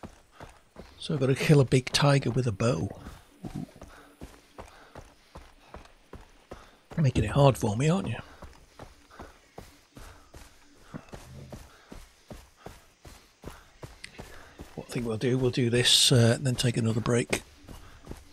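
An older man speaks with animation, close to a microphone.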